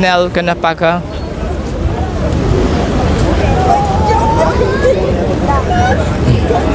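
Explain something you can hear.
A crowd of men and women murmurs and calls out outdoors.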